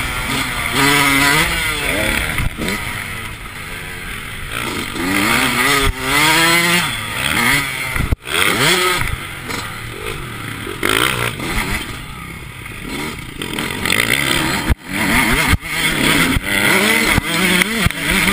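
A dirt bike engine revs hard up and down close by.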